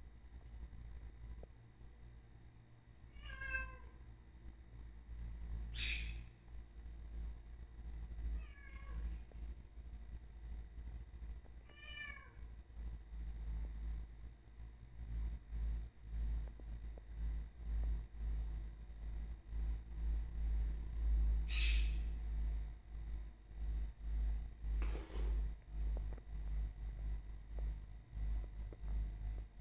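A dog's paws patter on a tiled floor.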